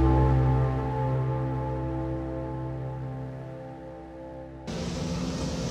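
Electronic synthesizer music plays with steady droning tones.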